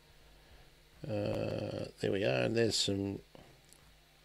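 A man speaks briefly with animation over an online call.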